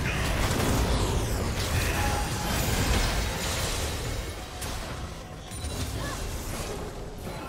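Game spell effects and combat sounds crash and clash loudly.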